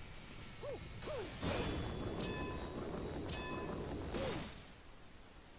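A spinning drill rumbles and whooshes as it bores through earth.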